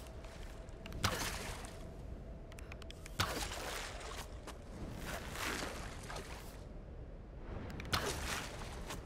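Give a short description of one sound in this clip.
A bow fires arrows with sharp twangs.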